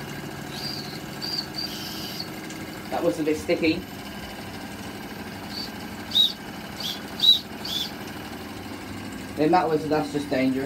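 A small toy live-steam engine chugs and hisses as its flywheel spins.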